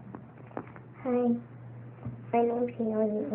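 A young girl speaks close by, softly and playfully.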